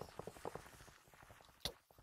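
Blows thud in a fight.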